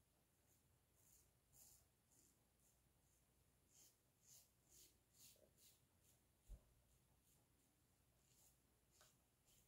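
A razor scrapes softly across stubble in short strokes.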